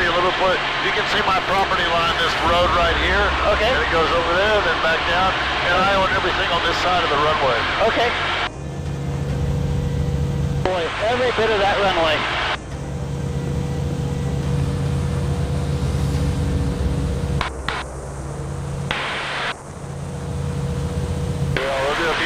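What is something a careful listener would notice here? A propeller plane's engine drones loudly and steadily.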